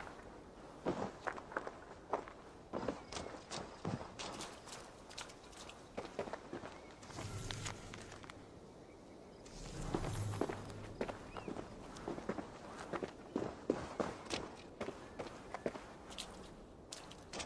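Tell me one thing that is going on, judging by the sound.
Footsteps crunch on dirt and wooden planks.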